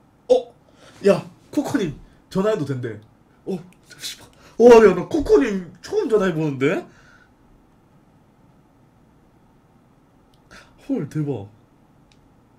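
A young man talks and laughs loudly into a microphone.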